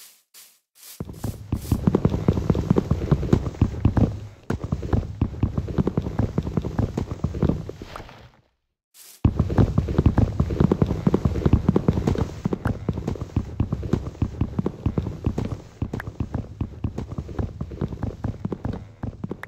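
Repeated knocks of wood being chopped ring out quickly, one after another.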